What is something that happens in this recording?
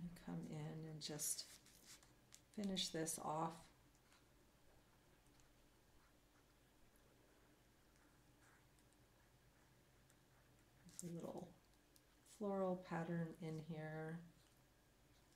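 A woman speaks calmly into a close microphone, in short phrases with pauses.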